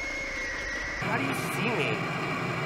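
Static hisses loudly.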